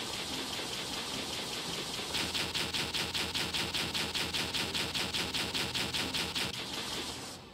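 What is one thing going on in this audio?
A game weapon fires in rapid bursts.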